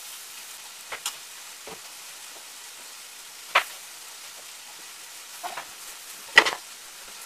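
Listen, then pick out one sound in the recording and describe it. A knife knocks sharply on a cutting board now and then.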